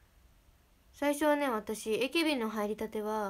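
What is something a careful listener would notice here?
A young woman speaks close to a microphone in a high, animated voice.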